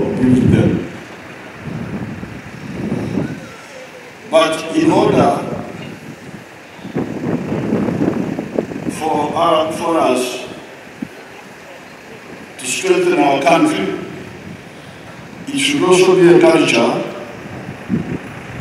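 A man speaks slowly and forcefully into a microphone over loudspeakers outdoors, with pauses.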